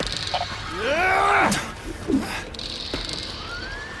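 A metal pipe swings and strikes with a heavy thud.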